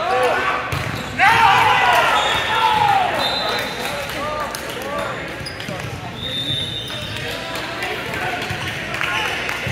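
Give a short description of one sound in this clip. Young men and women call out to each other in a large echoing hall.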